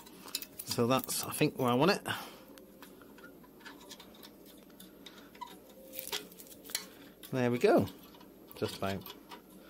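A screwdriver clicks and scrapes against a metal bolt.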